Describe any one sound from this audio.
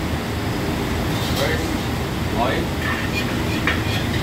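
A metal ladle scrapes and clanks in a wok.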